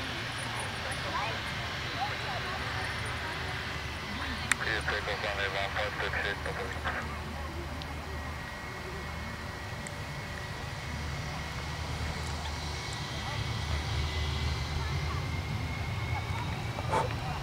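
A jet airliner's engines whine and rumble steadily as it taxis past.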